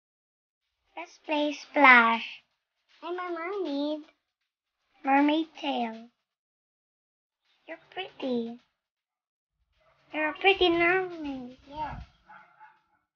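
A young girl talks with animation close to a microphone.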